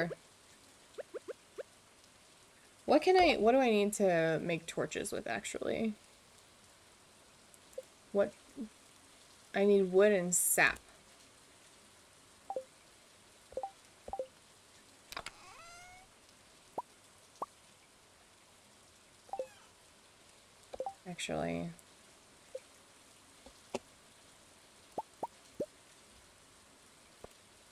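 Short game clicks and pops sound now and then.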